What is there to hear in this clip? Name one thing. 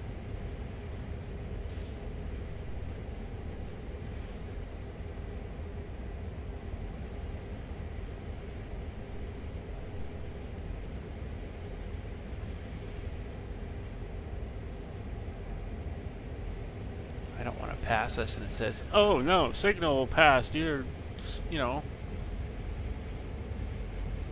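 A locomotive engine rumbles steadily at idle.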